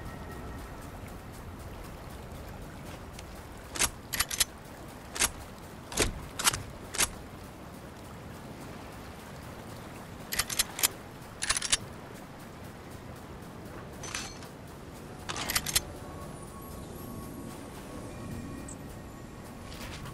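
Footsteps run across soft sand.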